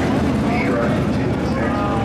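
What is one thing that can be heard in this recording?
An ATV engine runs as it drives past.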